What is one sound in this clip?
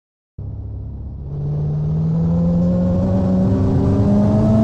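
A simulated SUV engine in a mobile driving game revs up as the car pulls away.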